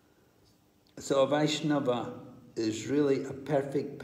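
An elderly man speaks very close to the microphone.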